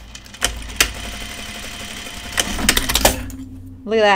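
A sewing machine runs with a steady whirr.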